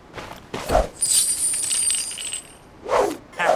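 Coins jingle with a bright, glittering chime.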